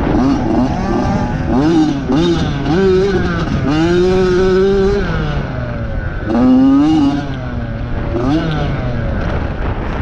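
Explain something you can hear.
A dirt bike engine revs up and down close by, its pitch rising and falling.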